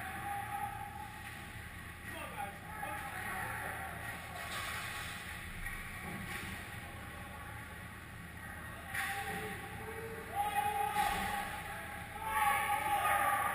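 Ice skates scrape and swish on the ice in a large echoing hall.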